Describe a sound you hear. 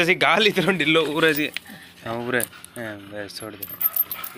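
A metal chain rattles.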